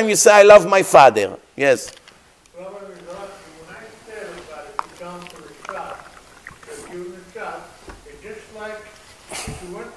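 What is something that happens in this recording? A middle-aged man speaks calmly through a microphone.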